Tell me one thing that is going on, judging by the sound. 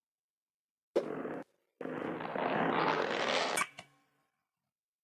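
A laser zaps with a rising electronic whoosh.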